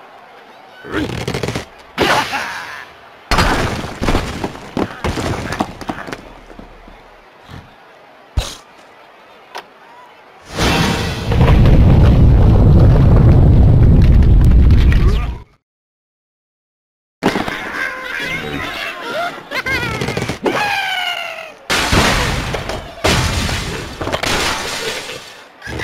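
Wooden and stone blocks crash and break apart.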